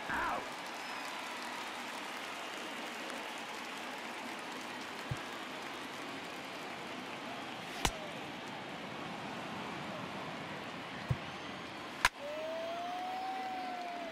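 A crowd murmurs in a large stadium.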